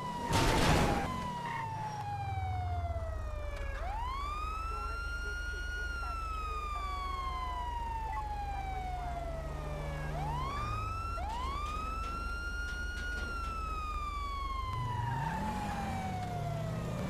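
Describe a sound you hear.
A police siren wails, rising and slowly falling.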